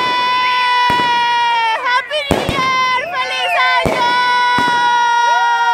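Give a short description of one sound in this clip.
Fireworks burst with sharp bangs.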